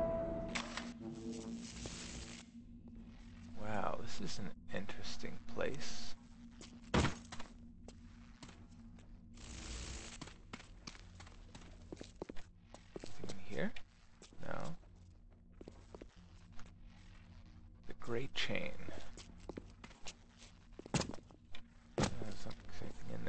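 Electricity crackles and buzzes in short bursts.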